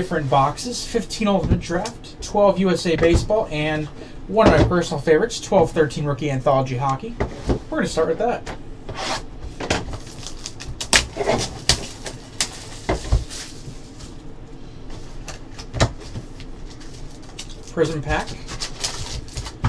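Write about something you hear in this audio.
Cardboard boxes knock and scrape on a table.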